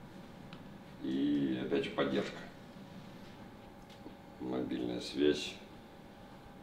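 A middle-aged man speaks calmly into a close microphone in short phrases.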